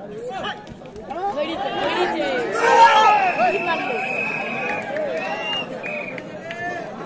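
A crowd cheers loudly as a player is tackled.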